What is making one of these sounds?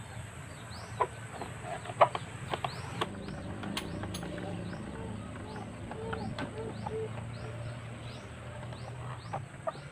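Metal parts click and knock as a motorcycle is worked on by hand.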